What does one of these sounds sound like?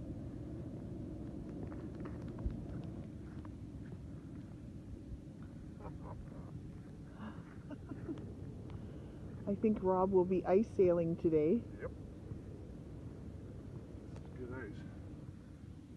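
Footsteps tap on smooth ice.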